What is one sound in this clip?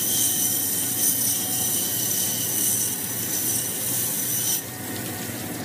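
A grinding wheel whirs loudly as it grinds stone under running water.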